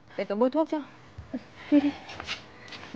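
A young woman speaks urgently close by.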